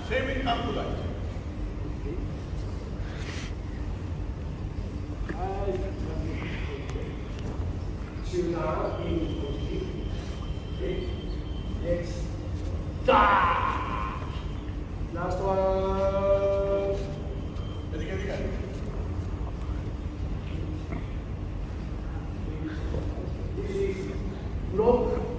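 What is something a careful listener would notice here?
An elderly man speaks calmly to a group.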